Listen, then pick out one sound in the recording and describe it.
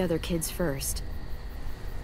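A young girl speaks calmly and closely.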